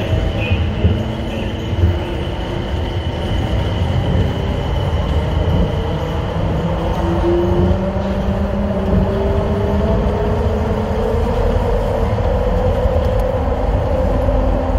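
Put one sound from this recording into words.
A subway train rumbles steadily through a tunnel.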